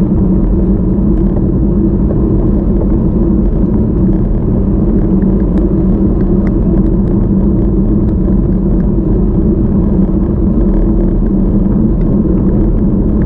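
Wind rumbles steadily against a moving microphone outdoors.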